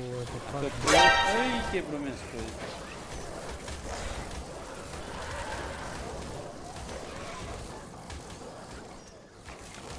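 A wolf snarls.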